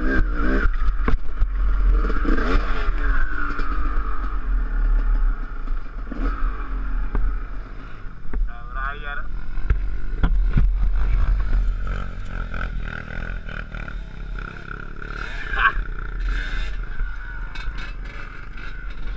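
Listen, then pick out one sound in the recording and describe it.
A dirt bike engine putters and revs close by.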